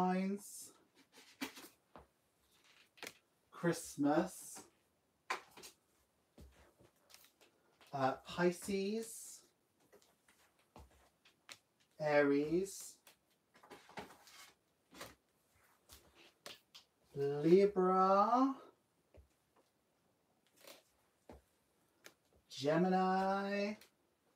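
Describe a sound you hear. Paper cards are laid down and tap softly on a table.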